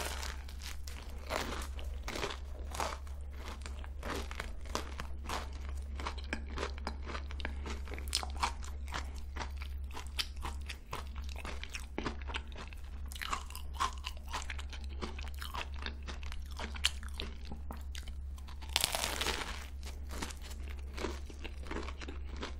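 A young woman chews food wetly and close to a microphone.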